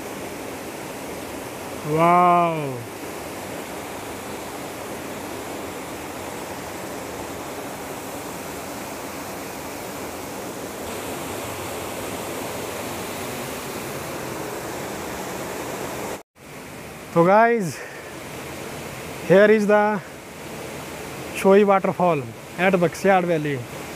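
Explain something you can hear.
A waterfall roars steadily, splashing into a pool.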